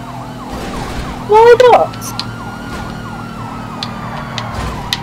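A police siren wails with fast repeating sweeps.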